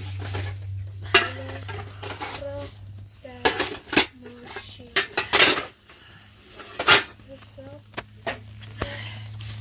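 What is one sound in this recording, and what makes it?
Metal pots clink and clatter as they are handled close by.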